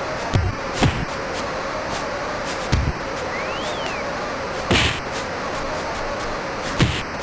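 Punches land with dull thuds in a video game.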